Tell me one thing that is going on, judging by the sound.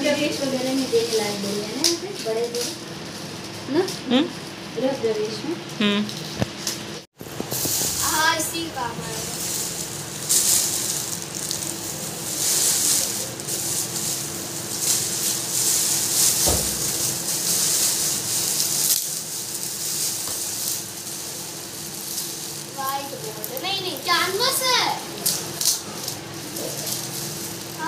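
Wrapping paper crinkles and rustles as it is handled and folded.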